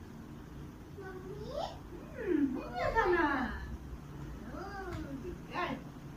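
A young girl speaks with animation nearby.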